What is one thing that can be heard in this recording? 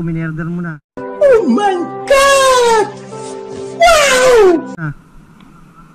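A man shouts and laughs loudly and wildly, close up.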